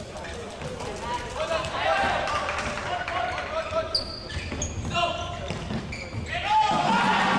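Players shout to each other in an echoing hall.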